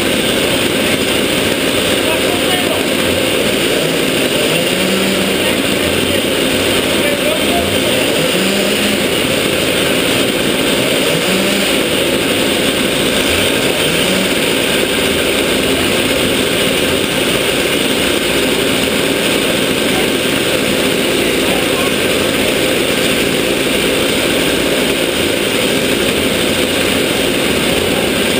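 A kart engine runs loudly close by, revving up and down.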